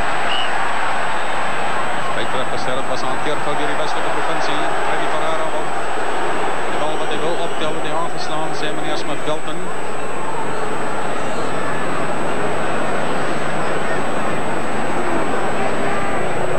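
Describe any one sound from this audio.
A large crowd roars and cheers steadily outdoors.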